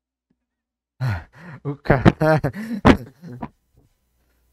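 A young man laughs heartily over a headset microphone.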